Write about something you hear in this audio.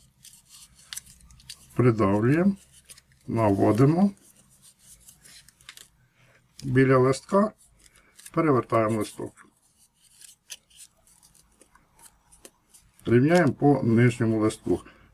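Paper crinkles softly as it is folded and creased.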